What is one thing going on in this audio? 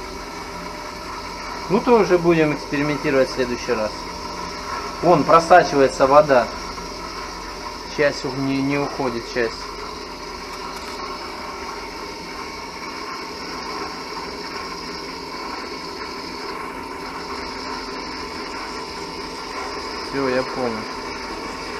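An electric pump hums steadily inside a hollow, echoing shaft.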